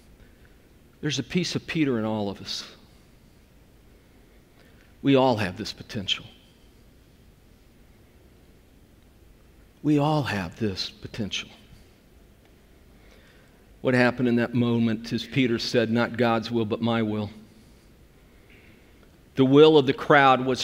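A middle-aged man speaks with animation into a microphone, with pauses between phrases.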